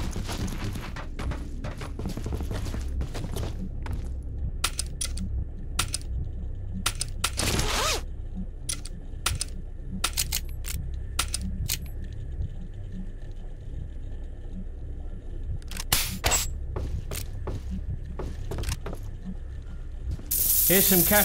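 Short clicks of a game menu sound in quick succession.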